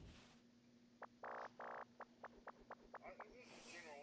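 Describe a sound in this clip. Soft electronic menu ticks sound in a quick run.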